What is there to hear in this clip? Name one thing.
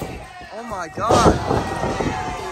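A wrestler's body slams onto the ring mat with a heavy thud.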